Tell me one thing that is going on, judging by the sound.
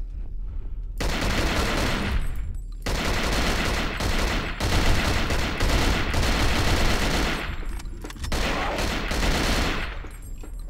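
A rifle fires rapid bursts of automatic gunfire.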